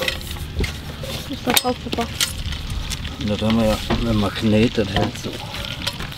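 A plastic lamp housing rattles and knocks as it is handled.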